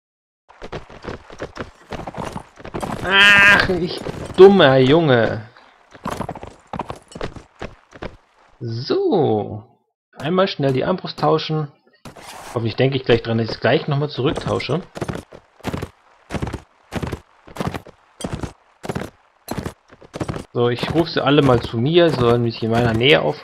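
Horse hooves thud in a steady galloping rhythm.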